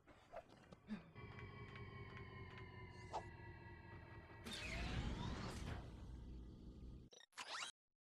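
A spaceship engine rumbles and roars as it takes off.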